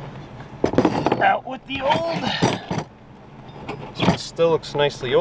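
Plastic tool case parts clatter and click.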